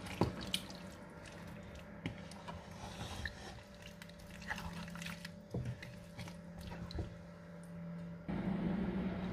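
A wooden spoon stirs and scrapes food in a pot.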